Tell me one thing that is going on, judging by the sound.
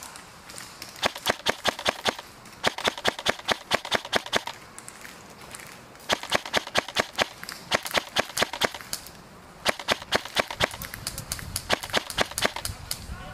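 An airsoft gun fires rapid bursts of sharp clicking shots.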